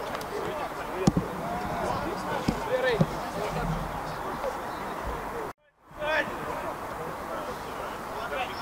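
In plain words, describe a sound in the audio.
Men shout and call out across an outdoor pitch.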